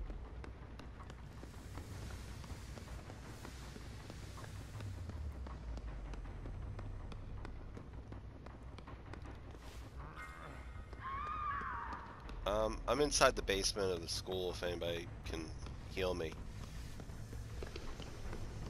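Footsteps tread steadily across a hard floor.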